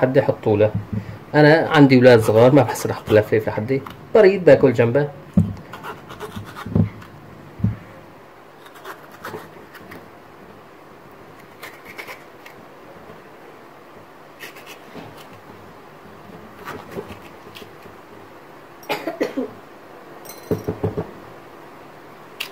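A knife cuts through a crisp pepper with soft crunches.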